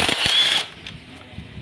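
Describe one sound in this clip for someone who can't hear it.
An impact wrench whirs loudly in short bursts.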